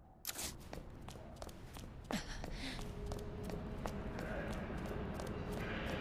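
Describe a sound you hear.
Footsteps tread steadily on a wooden floor.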